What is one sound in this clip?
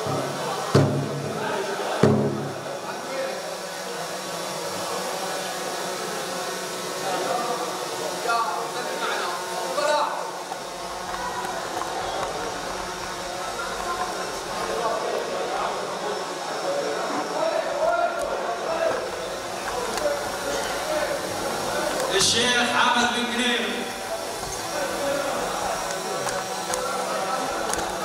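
A crowd of men chatter and greet one another in a large echoing hall.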